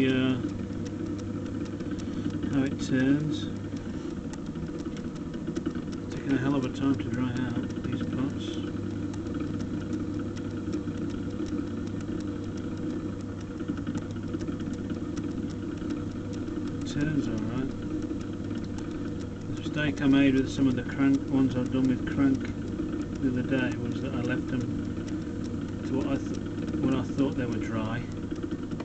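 A potter's wheel hums steadily as it spins.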